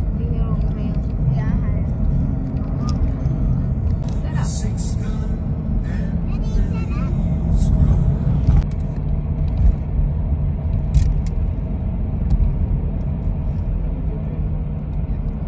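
A vehicle's engine hums steadily, heard from inside.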